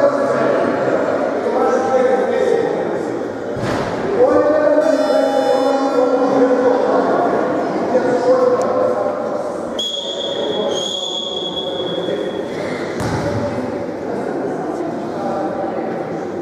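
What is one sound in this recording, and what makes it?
Boys' voices chatter nearby.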